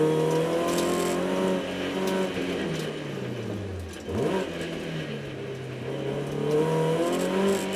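A racing car engine revs hard, rising and falling as gears change.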